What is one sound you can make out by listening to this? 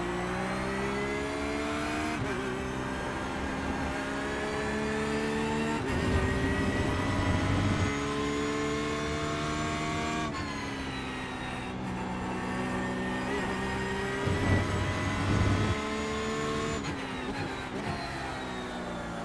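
A racing car engine revs high and drops sharply with each gear change.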